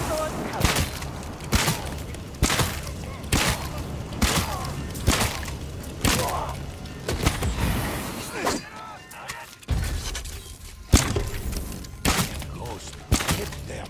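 Arrows are shot from a bow with sharp twangs.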